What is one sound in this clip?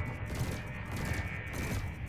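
A laser fires with a sharp zap.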